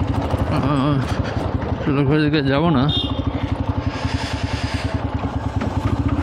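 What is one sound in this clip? A motorcycle engine putters steadily up close.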